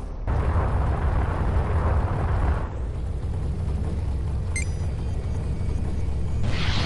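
A spaceship engine roars with a deep, steady rumble.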